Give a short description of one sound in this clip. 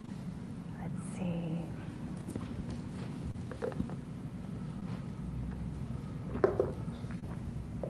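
A woman speaks briefly and quietly through a microphone.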